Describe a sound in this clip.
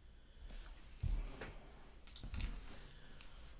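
A deck of cards thumps onto a table.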